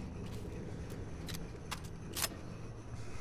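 A break-action shotgun clicks metallically as it is opened and closed.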